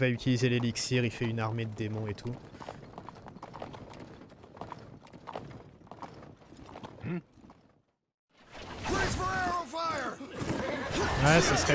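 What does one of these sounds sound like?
Horse hooves thud slowly on soft ground.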